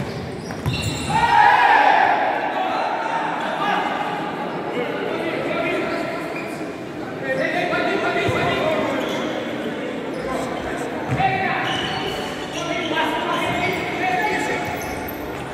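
Men shout to each other across an echoing indoor hall.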